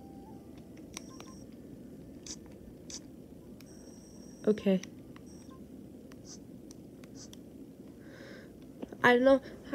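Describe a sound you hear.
Short electronic menu blips and clicks sound from a game console.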